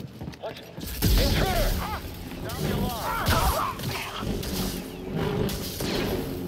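Laser blasts fire and crackle.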